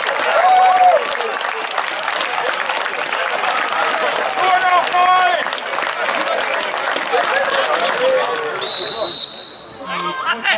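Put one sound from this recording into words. A crowd of spectators cheers and shouts outdoors.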